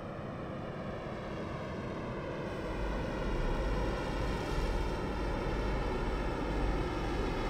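A flying machine hums steadily and grows louder as it draws near.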